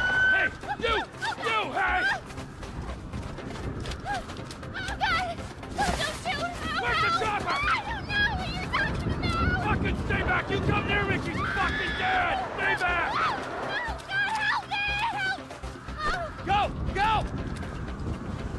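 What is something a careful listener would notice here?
An elderly man pleads in a frightened, shaky voice.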